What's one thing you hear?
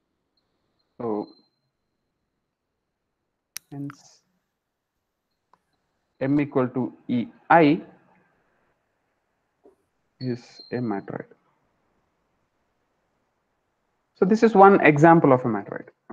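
A young man speaks calmly in short phrases, heard through an online call.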